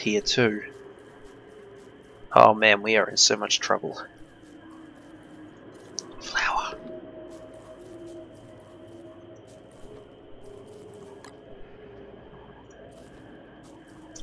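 Footsteps patter softly on dry ground.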